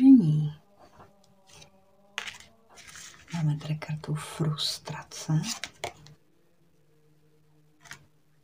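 A card slaps softly onto a tabletop.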